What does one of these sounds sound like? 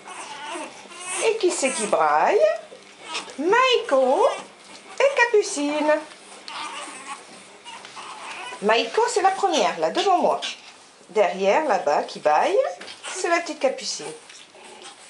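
Puppies yip and whine in high squeaky bursts.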